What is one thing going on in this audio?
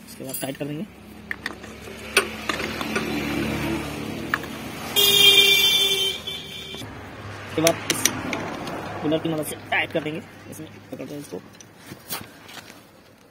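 Metal tools clink and scrape against an engine.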